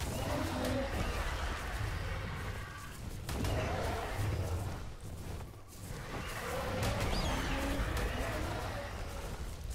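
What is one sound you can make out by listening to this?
Large wings flap heavily.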